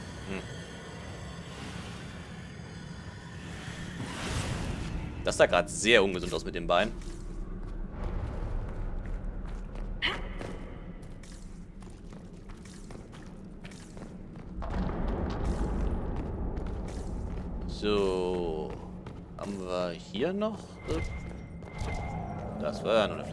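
Footsteps scuff on stone steps.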